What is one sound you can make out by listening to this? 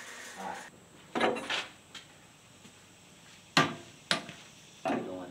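Metal parts clank as a man handles a truck frame.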